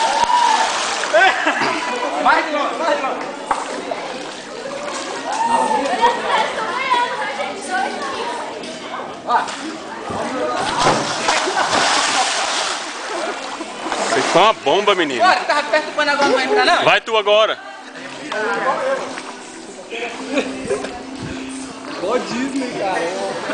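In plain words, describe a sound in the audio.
Young men talk and shout excitedly nearby.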